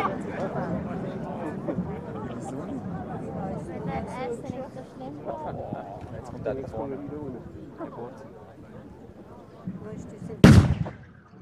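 A group of people chat at a distance outdoors.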